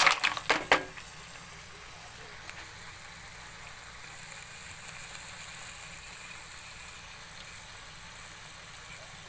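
Mussels simmer and bubble softly in a pot.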